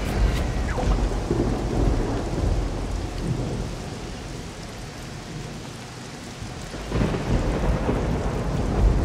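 Heavy rain pours steadily.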